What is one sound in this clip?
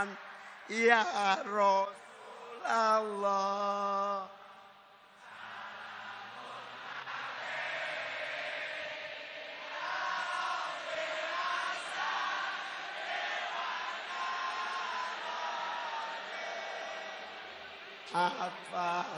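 A huge crowd cheers and roars.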